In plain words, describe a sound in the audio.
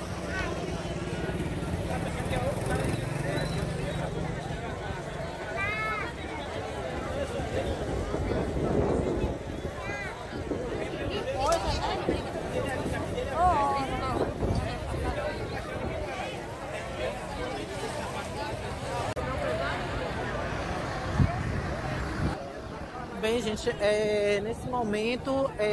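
A large crowd of men and women murmurs and chatters outdoors.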